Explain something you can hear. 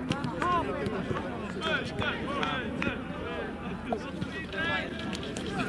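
Young men shout and call to each other outdoors across an open field.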